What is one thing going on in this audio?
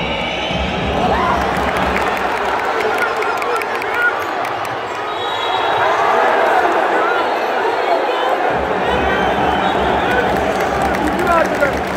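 A large crowd cheers and shouts loudly close by.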